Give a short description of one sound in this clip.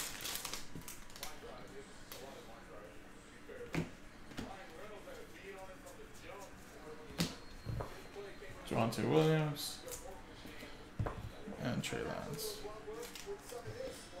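Trading cards shuffle and rustle in hands.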